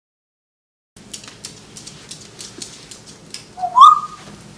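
Claws of an African grey parrot tap on a wooden floor.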